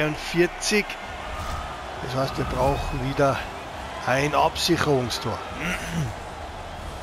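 A large arena crowd cheers and roars.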